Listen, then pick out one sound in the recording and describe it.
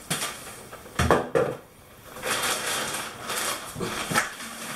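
A scoop scrapes and knocks against a plastic bucket.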